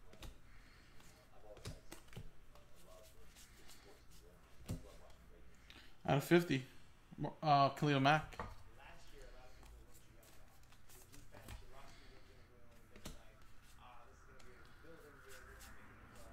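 Trading cards flick and rustle between fingers.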